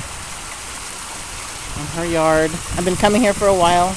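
Water splashes steadily down a small waterfall.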